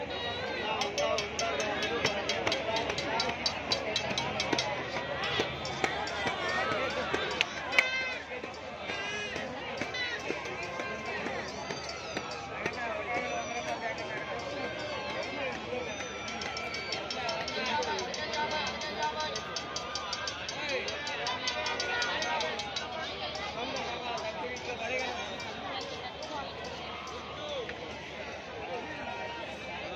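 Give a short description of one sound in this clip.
A large crowd of men, women and children chatters all around outdoors.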